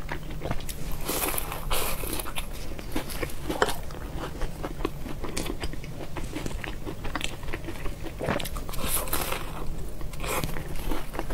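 A young woman takes crunchy bites of a pastry, close to a microphone.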